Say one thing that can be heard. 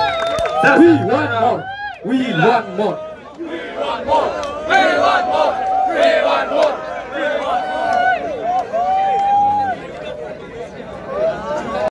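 A large group of young men and women sing together loudly outdoors.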